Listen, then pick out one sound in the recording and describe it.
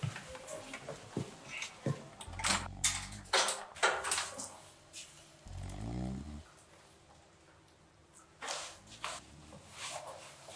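A young woman whispers urgently close by.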